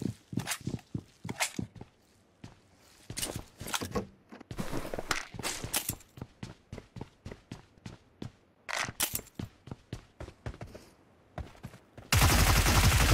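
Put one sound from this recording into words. Footsteps tap quickly on wooden floors.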